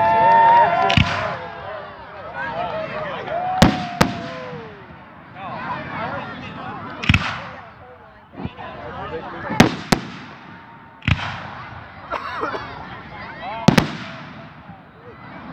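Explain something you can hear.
Fireworks crackle and sizzle after each burst.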